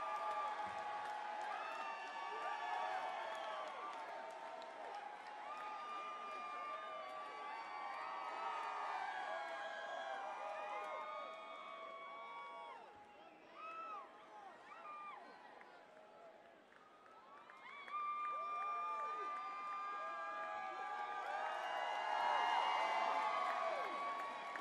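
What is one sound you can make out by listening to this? A large crowd cheers and screams outdoors.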